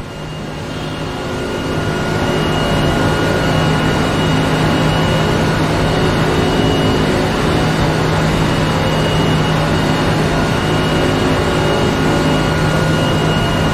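A racing car engine roars steadily at high speed.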